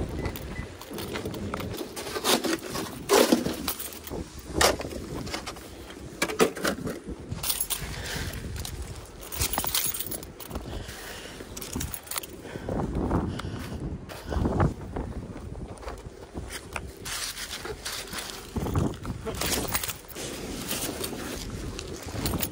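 A plastic shovel scrapes and scoops snow close by.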